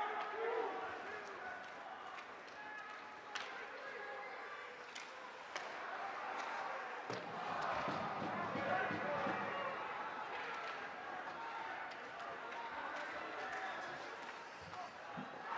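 A crowd murmurs in an echoing rink.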